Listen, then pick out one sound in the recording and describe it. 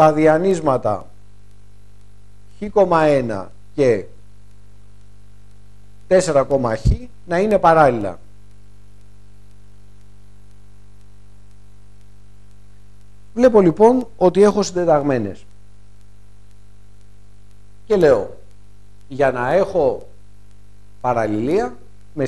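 A man speaks calmly in short phrases, as if explaining.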